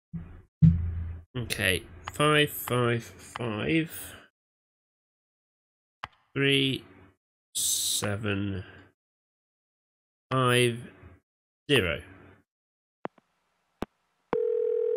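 A phone keypad beeps as a number is dialed.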